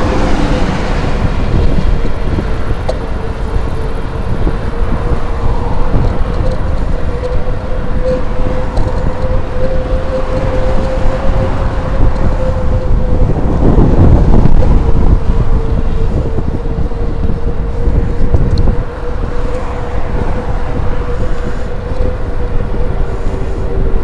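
Wind buffets the microphone while riding.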